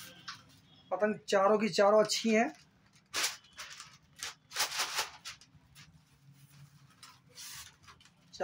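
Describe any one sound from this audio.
A paper kite rustles as it is handled.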